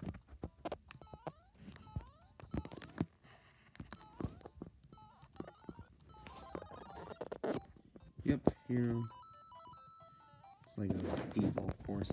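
Short chirping game sound effects ring out from a small speaker.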